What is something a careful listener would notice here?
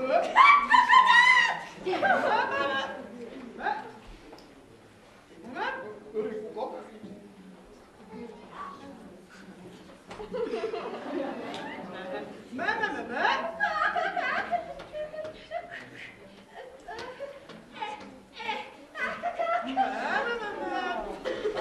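Puppeteers talk in animated, high-pitched character voices.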